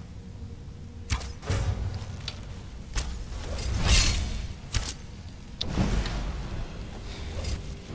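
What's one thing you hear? A bowstring twangs sharply as arrows are loosed.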